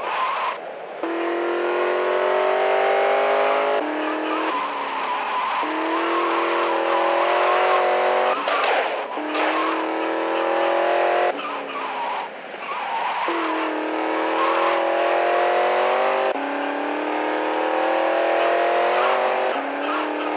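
A car engine revs up repeatedly, its pitch climbing and dropping with each gear change.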